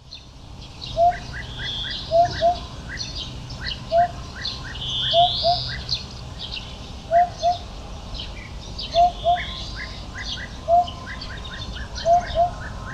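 A hoopoe calls with soft, low, repeated hoots.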